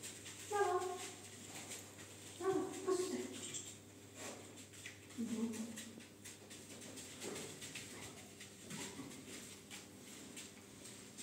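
Footsteps pad softly.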